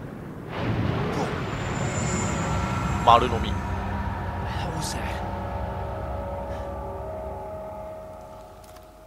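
A large creature crashes into water with a heavy splash.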